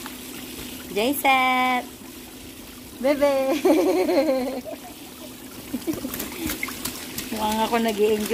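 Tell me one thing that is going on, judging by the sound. A woman speaks playfully close by, in a high sing-song voice.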